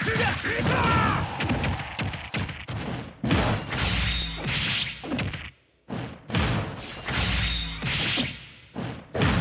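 Punches and kicks in a fighting game land with sharp cracks and thuds.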